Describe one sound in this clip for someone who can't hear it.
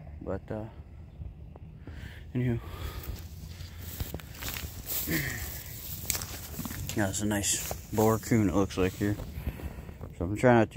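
Dry grass rustles and crunches underfoot.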